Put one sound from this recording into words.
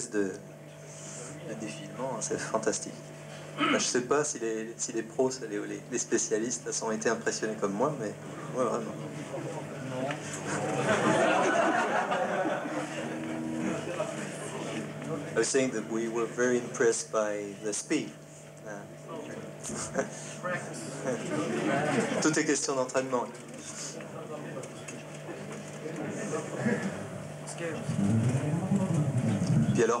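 An electric bass guitar plays a run of notes through an amplifier.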